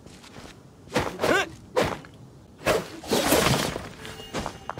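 A blade strikes rock with sharp cracks.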